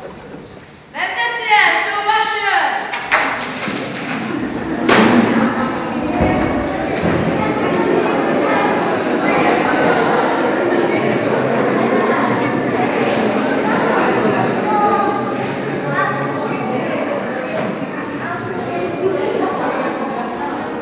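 A young boy speaks loudly and theatrically in a large hall.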